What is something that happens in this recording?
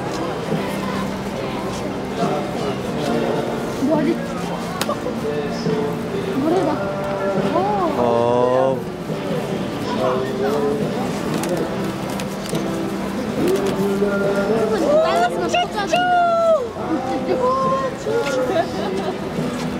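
Rubber balloons squeak and rub as they are twisted.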